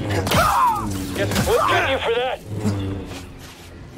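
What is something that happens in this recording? A lightsaber clashes with sharp crackles.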